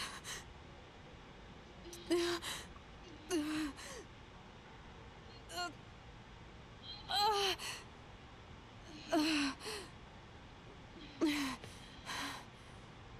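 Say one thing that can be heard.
A young woman speaks close by in short, strained bursts with pauses between them.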